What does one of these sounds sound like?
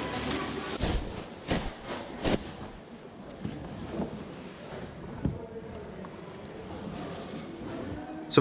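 Shoes thump and knock as they are rummaged through.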